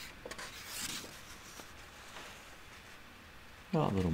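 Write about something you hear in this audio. Paper pages rustle as a book page is turned.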